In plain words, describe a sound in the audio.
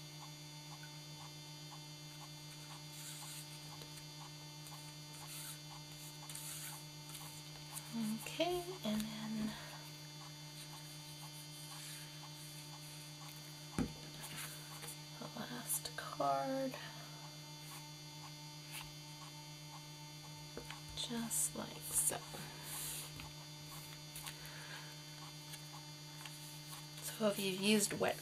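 Hands rub and press on cardboard.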